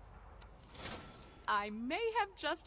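A short bright chime plays as a task is completed.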